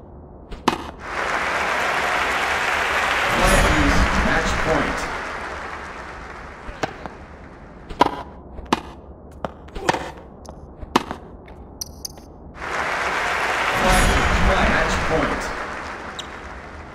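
A crowd cheers and applauds loudly, then fades.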